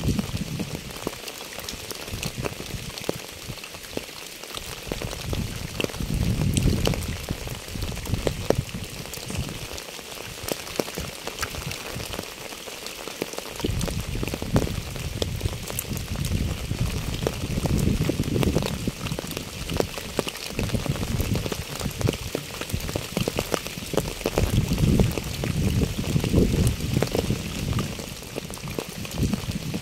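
Wind gusts outdoors, rising and falling.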